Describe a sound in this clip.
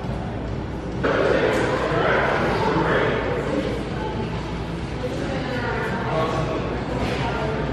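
A crowd of adults chatters in a large room.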